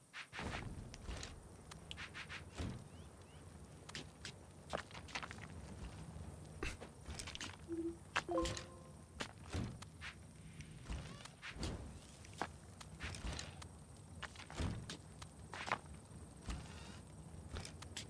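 Short clicks sound as building blocks are placed in a game.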